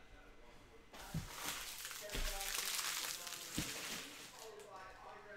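Card packs rustle and crinkle as hands tear them open.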